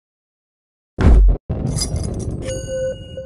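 Blocks crash and clatter as a ball smashes through them.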